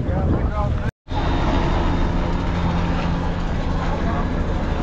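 A helicopter drones overhead.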